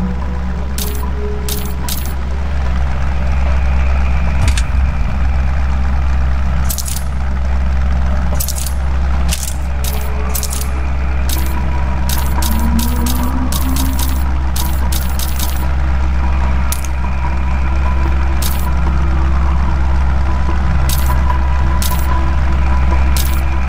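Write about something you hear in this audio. Menu selection clicks tick sharply, many times in quick runs.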